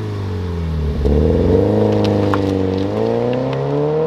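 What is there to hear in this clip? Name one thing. A sports car accelerates away, its engine droning and rising in pitch.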